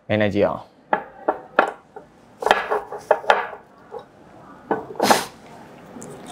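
A glass lid clinks against a glass jar.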